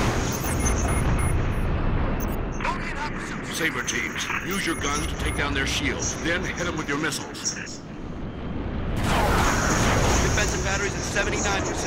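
Spacecraft engines roar steadily.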